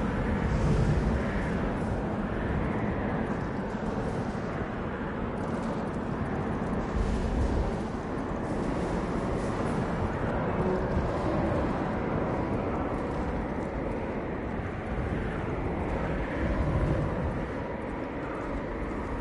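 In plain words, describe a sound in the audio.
A snowboard hisses as it slides over snow.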